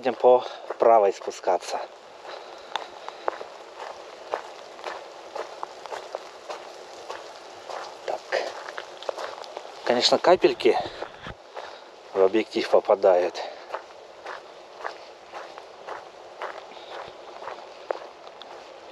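Footsteps crunch on a wet gravel path.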